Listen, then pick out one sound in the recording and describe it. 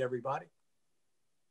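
An elderly man speaks calmly through an online call.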